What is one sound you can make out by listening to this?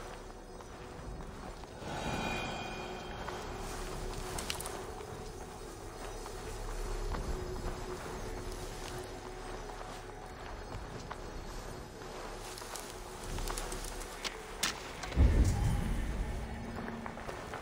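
Leaves and grass rustle as someone creeps through dense plants.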